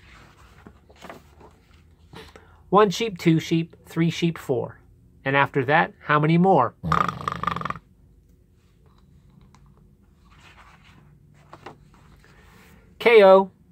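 A page of a book is turned.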